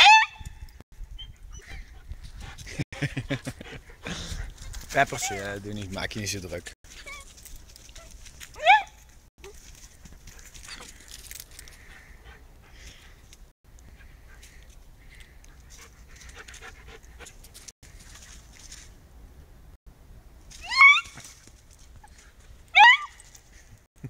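A dog whines in short, high yelps.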